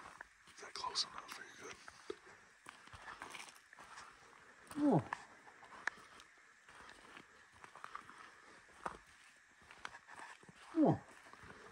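Footsteps crunch steadily on gravel and dry leaves outdoors.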